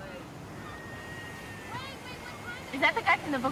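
Waves break and wash onto a beach.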